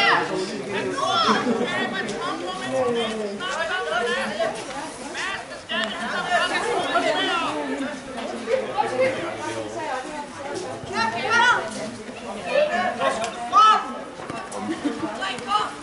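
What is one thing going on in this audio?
Young men shout and call to one another outdoors on an open field.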